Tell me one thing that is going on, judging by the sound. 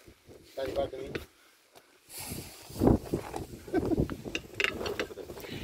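Metal tyre levers scrape and clink against a wheel rim.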